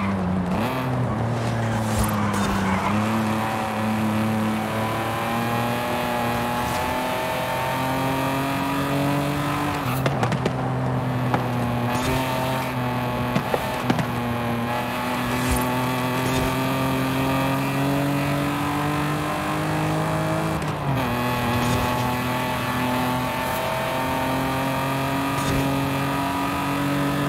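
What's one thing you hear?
A car engine roars steadily, rising in pitch as it speeds up and dropping briefly at each gear change.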